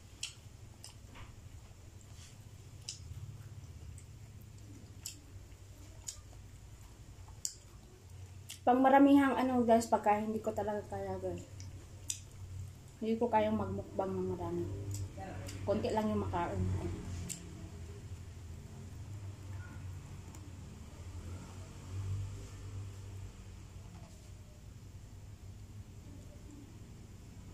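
A young woman chews and smacks her lips up close.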